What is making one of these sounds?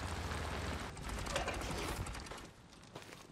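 A motorcycle engine rumbles nearby.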